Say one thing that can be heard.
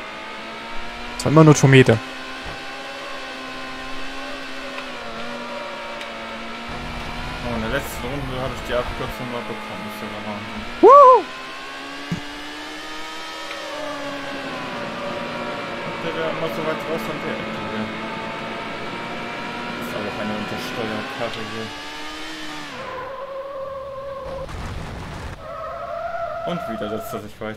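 A racing car engine roars steadily at high revs, rising and falling in pitch as it shifts gears.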